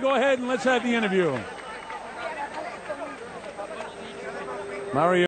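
A crowd of men talk and cheer around.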